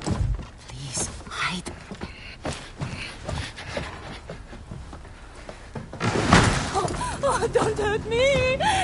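A woman pleads quietly and fearfully.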